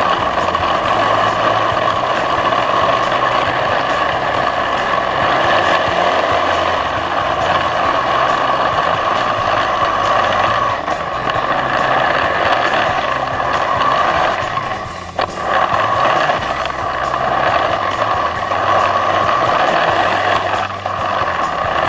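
Snow crunches and hisses under a snowmobile's track.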